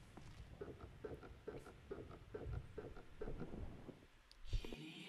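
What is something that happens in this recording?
Footsteps tread in a quick, steady rhythm.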